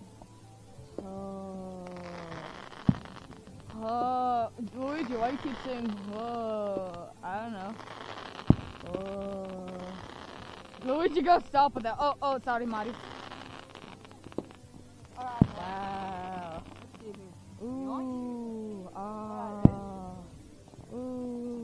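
Firework rockets whistle as they shoot up.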